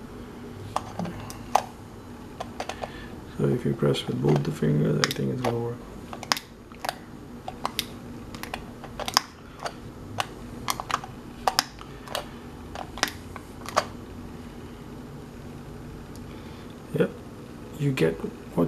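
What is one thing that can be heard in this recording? A push light clicks sharply as it is pressed on and off.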